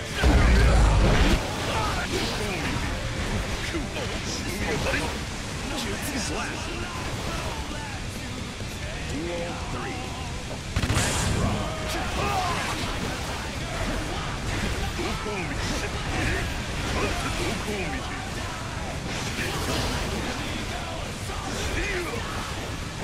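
Blades swing and slash with sharp whooshes.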